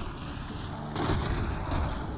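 A loud explosion bursts and rumbles.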